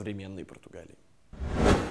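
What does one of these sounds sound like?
A young man speaks calmly up close.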